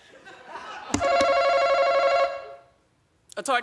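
A buzzer sounds with a steady electronic tone.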